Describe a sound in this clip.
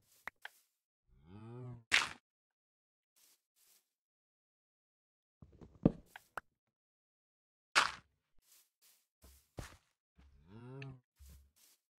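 Soil is dug with short crunching thuds.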